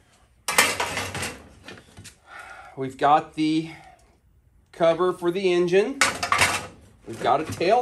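A metal part clatters as it is set down on a table.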